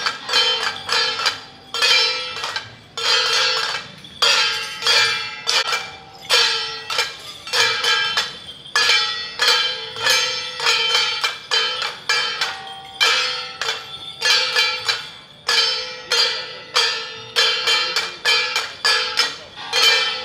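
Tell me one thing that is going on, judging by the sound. Cymbals clash loudly in a quick, steady rhythm and ring out.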